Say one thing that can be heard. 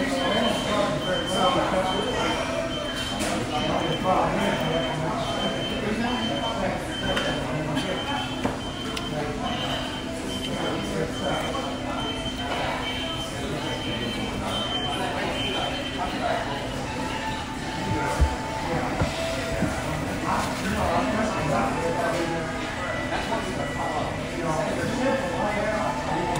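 A crowd murmurs in a busy room.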